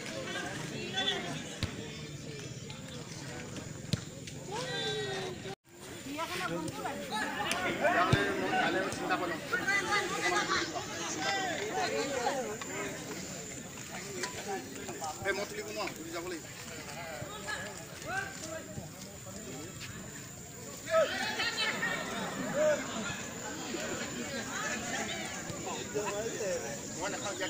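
A crowd of spectators shouts and cheers outdoors.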